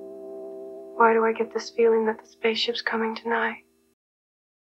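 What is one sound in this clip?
A young woman speaks softly and wistfully, close by.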